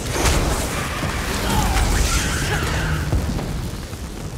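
Crackling electric zaps burst and sizzle.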